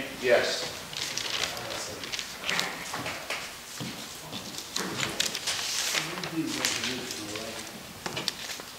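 A man speaks calmly nearby in a room with a slight echo.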